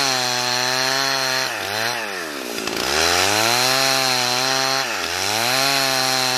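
A chainsaw engine roars loudly close by, dropping and rising in pitch as it cuts.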